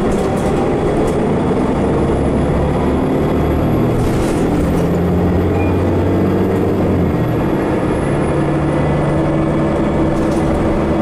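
A bus engine hums and drones steadily from inside the cabin.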